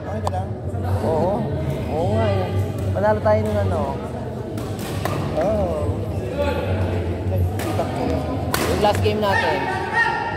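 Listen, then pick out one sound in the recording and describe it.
A racket strikes a shuttlecock with sharp smacks.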